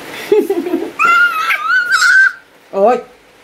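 A baby babbles and squeals in a high voice.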